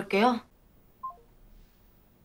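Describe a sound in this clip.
A phone gives a short falling beep as a call ends.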